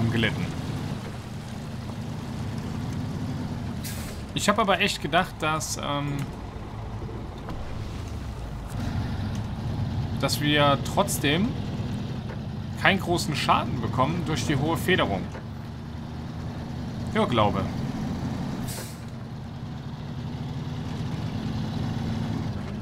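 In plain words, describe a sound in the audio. A heavy truck's diesel engine rumbles steadily as it drives.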